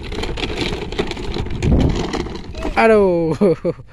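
A plastic toy car tips over onto the ground with a clatter.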